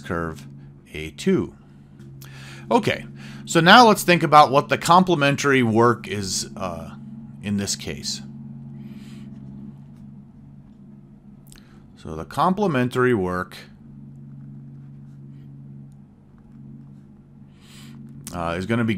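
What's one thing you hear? A man talks calmly and closely into a microphone, with pauses.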